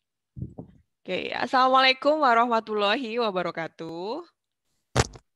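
A young woman speaks with animation over an online call.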